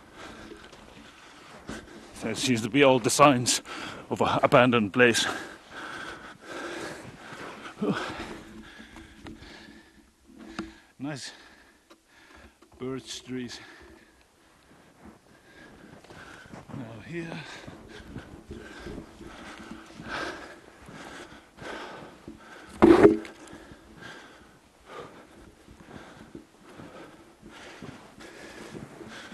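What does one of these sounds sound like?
Footsteps crunch through snow.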